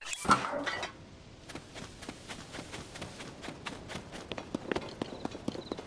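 Footsteps patter quickly over grass and rocky ground.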